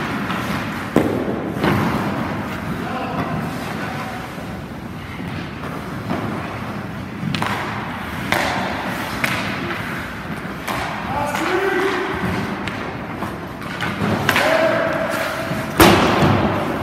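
A hockey stick strikes a puck with a sharp crack.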